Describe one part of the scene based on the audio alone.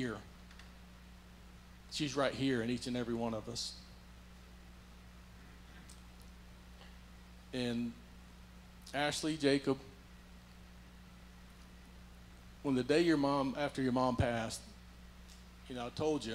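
An elderly man speaks slowly through a microphone in a large echoing hall, with long pauses.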